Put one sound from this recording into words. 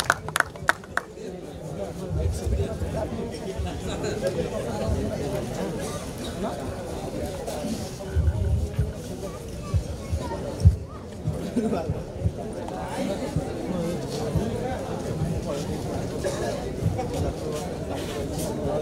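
A young man speaks with animation through a microphone and loudspeakers.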